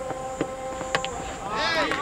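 A cricket bat strikes a ball with a sharp crack outdoors.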